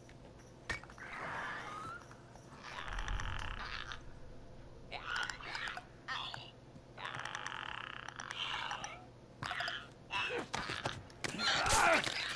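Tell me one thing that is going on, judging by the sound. A creature clicks and growls nearby.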